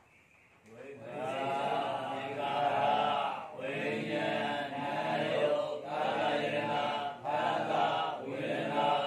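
A man chants steadily into a microphone, close and clear.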